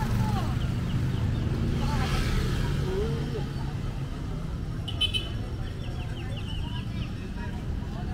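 Men and women chat quietly nearby.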